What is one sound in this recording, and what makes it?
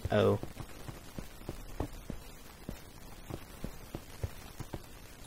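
Footsteps tread on stone at a steady walking pace.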